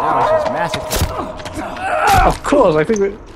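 An axe strikes flesh with heavy thuds.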